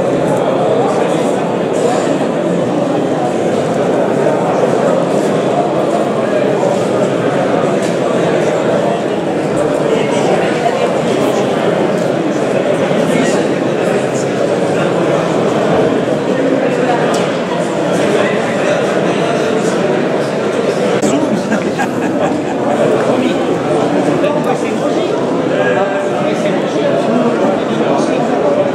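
A large crowd murmurs and chatters in an echoing hall.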